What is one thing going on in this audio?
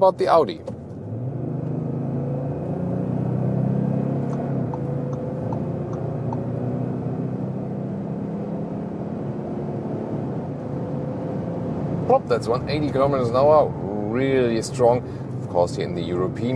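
A car engine roars as the car accelerates hard.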